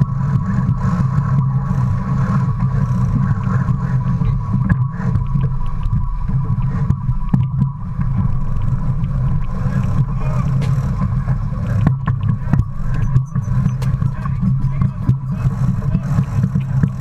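Water rushes along a sailing boat's hull.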